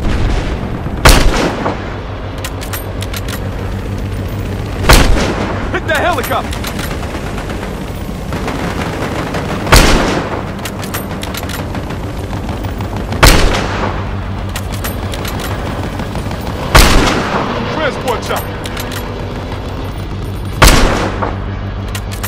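A sniper rifle fires loud, booming shots at a steady pace.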